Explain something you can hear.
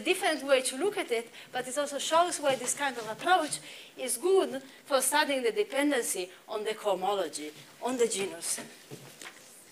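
A young woman lectures calmly through a microphone.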